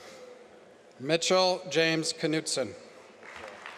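A man reads out over a loudspeaker in a large hall.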